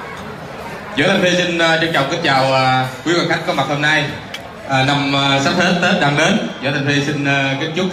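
A man sings loudly through a loudspeaker.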